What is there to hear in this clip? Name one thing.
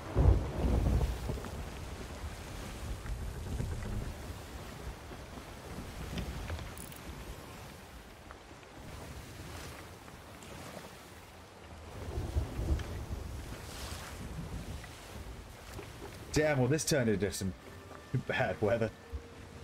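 Stormy sea waves crash and roar.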